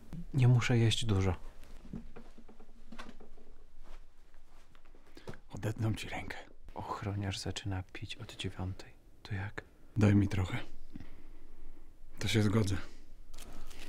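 A man speaks quietly and earnestly, close by.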